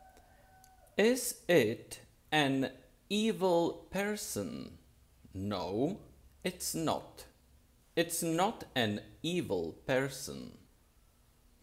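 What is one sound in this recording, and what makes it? A middle-aged man speaks calmly and close up.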